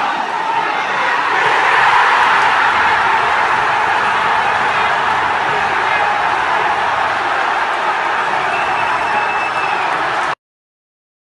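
A large crowd erupts in cheers and shouts.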